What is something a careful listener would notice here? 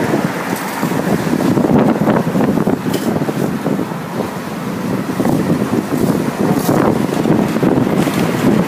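Road traffic rumbles past steadily outdoors.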